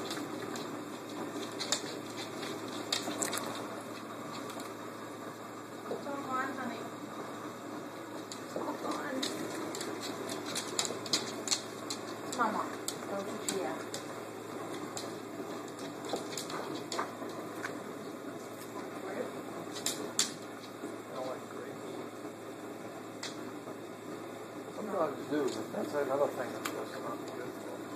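A dog sniffs and chews up small treats.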